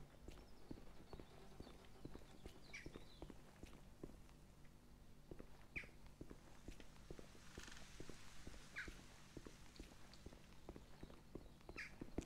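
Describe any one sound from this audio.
Footsteps crunch steadily on gravel.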